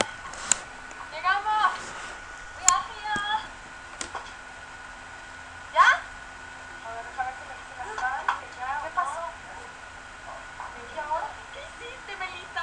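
A young woman talks close to a microphone, speaking casually.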